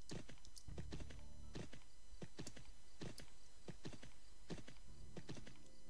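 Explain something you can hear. Hooves thud steadily on soft ground.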